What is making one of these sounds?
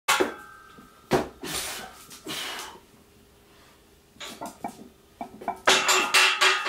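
Metal weight plates clank on a barbell.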